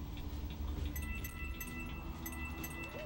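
Bright chimes ring out as coins are collected in a video game.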